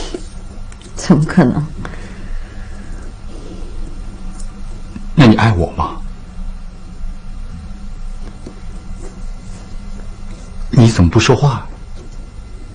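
A man speaks quietly in short phrases, close by.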